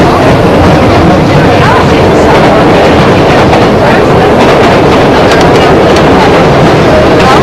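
Passengers chatter around in a crowded carriage.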